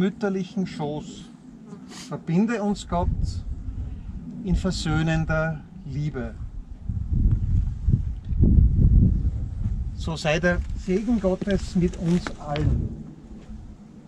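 An elderly man speaks calmly outdoors.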